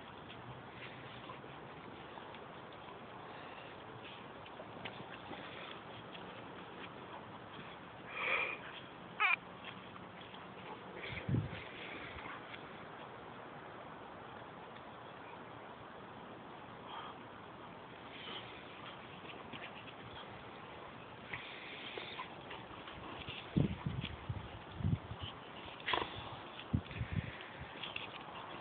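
Paws scuffle on dry grass and dirt.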